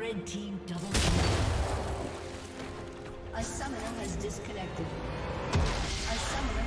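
Magic blasts and hits crackle and boom in a video game fight.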